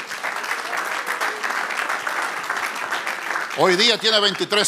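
An audience claps in a large room.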